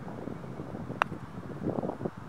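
A golf putter taps a ball once.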